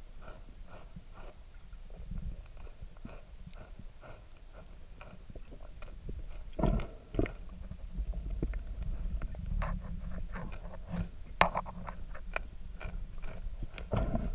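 A manatee crunches and chews on plants underwater, close by.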